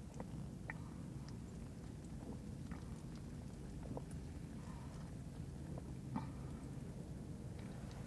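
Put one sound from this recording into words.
A woman gulps from a plastic bottle.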